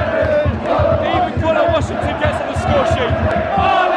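A young man shouts excitedly right next to the microphone.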